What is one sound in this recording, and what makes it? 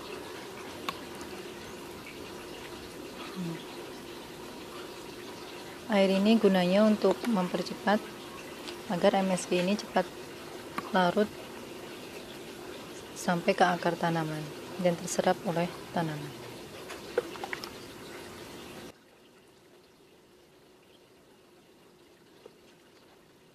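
Water trickles from a watering can onto soil.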